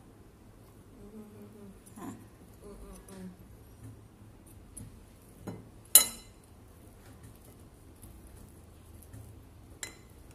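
A spoon scrapes on a ceramic plate.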